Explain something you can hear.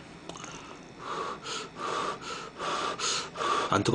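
A young man chews food loudly.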